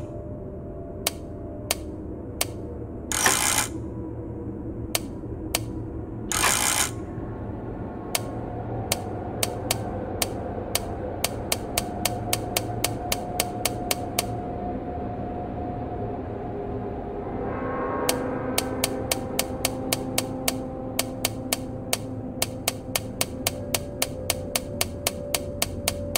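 A safe's combination dial clicks as it turns, click after click.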